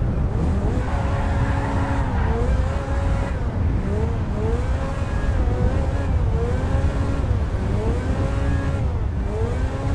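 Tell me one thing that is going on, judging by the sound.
Tyres roll along a road with a low rumble.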